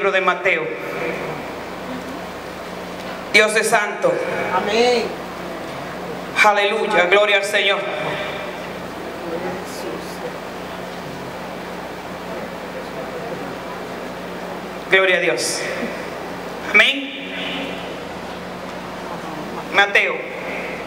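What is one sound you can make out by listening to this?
A woman speaks through a loudspeaker in an echoing room, in short bursts with pauses.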